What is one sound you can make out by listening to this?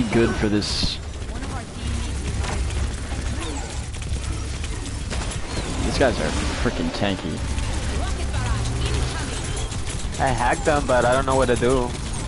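Heavy gunfire blasts rapidly.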